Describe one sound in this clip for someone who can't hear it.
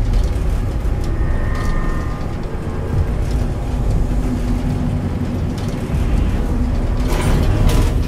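An elevator hums and rumbles steadily as it rides between floors.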